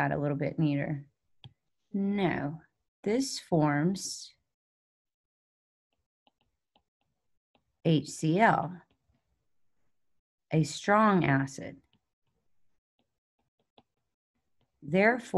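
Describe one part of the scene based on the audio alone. A woman speaks calmly into a microphone, explaining in short phrases with pauses.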